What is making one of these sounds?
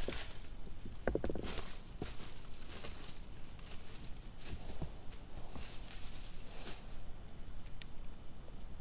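Footsteps crunch on dry leaves and slowly grow distant.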